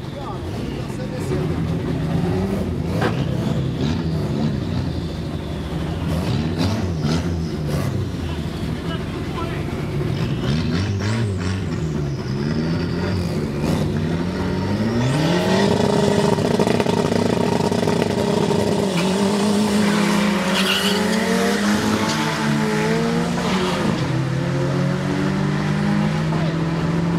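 Race car engines idle and rev loudly outdoors.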